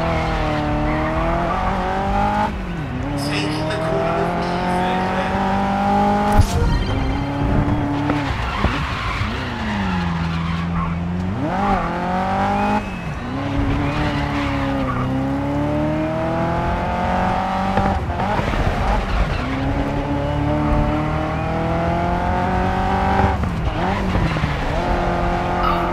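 A race car engine roars, rising and dropping in pitch with each gear change.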